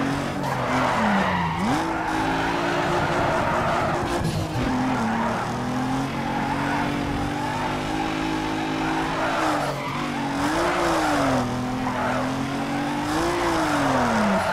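Tyres screech as a car drifts through corners.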